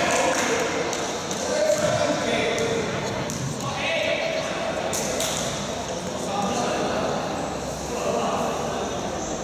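Basketball players' sneakers squeak and thud on a wooden court in a large echoing hall.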